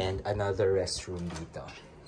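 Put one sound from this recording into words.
A door handle clicks as a door opens.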